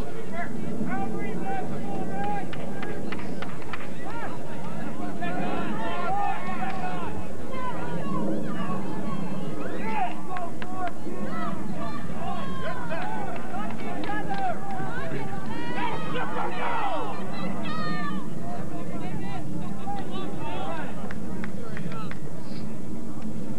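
A crowd of people chatter and call out outdoors.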